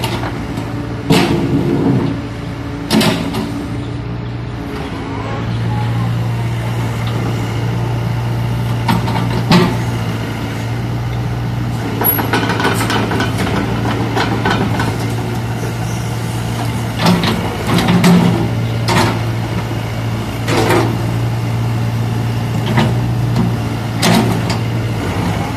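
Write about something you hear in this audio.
A diesel excavator engine hums steadily nearby.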